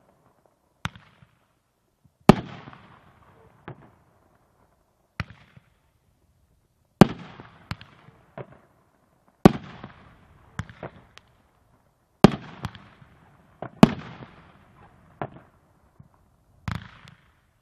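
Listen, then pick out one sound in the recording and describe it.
Fireworks rockets whistle and crackle as they shoot up.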